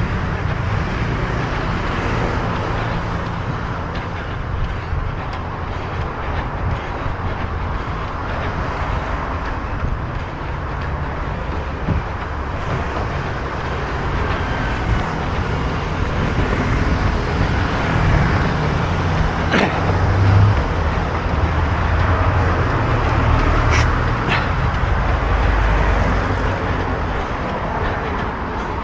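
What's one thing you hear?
Traffic passes steadily on a nearby road.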